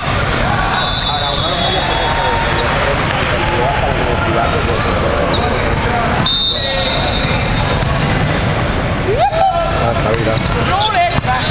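Many voices chatter and echo through a large hall.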